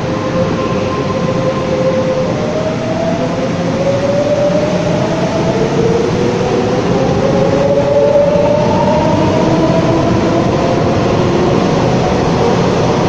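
Electric train motors whine, rising in pitch.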